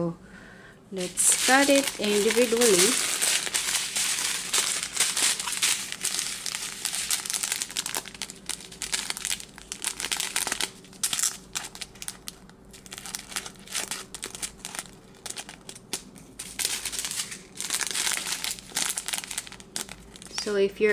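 Plastic packaging crinkles and rustles as it is handled up close.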